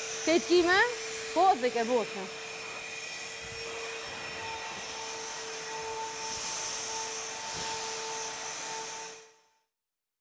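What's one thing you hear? A vacuum cleaner whines steadily.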